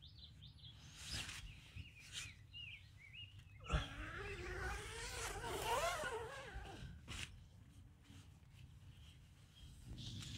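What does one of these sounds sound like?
Blankets rustle as a man moves about.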